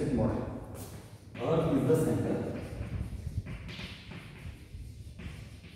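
Chalk scratches and taps on a blackboard.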